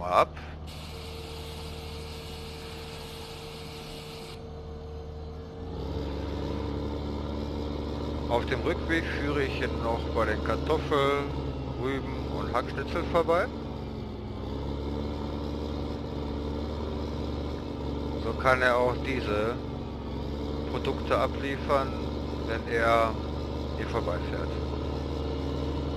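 A tractor engine rumbles steadily, growing louder as the tractor drives off.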